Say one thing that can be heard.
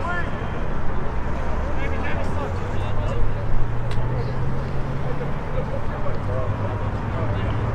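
Young men shout to each other in the distance outdoors.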